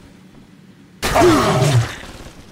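A gun fires with a loud bang.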